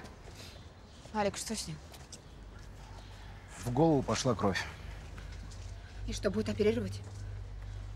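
A young man speaks calmly in reply.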